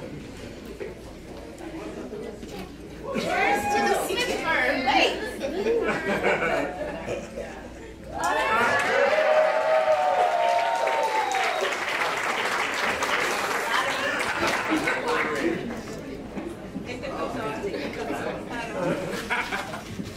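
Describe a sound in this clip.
Men and women talk with animation nearby.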